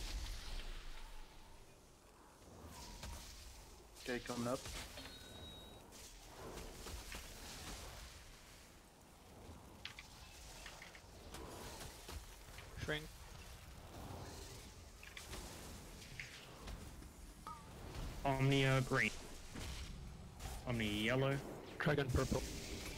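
Game spell effects whoosh and clash.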